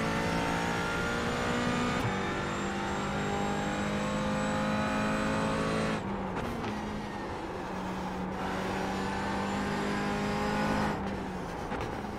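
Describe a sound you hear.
A racing car engine roars at high revs, dropping in pitch with each gear change.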